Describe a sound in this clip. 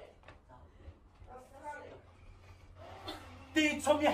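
A man whoops and laughs excitedly.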